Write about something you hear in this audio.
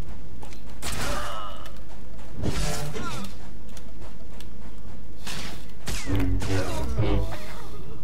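Blasters fire in quick bursts.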